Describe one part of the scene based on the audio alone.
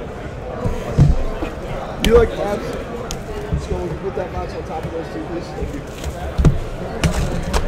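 Boxes thump softly onto a table.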